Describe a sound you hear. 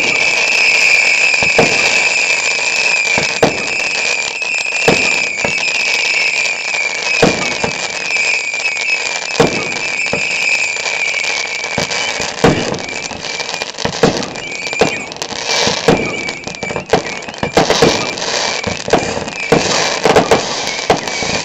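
Fireworks bang and pop in the distance, again and again.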